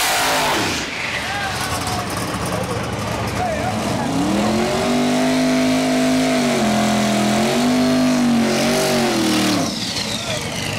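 Tyres screech and spin on the track.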